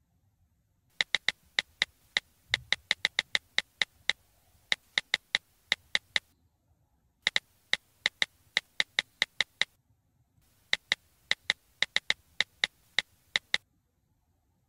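A phone keyboard clicks in quick bursts of taps.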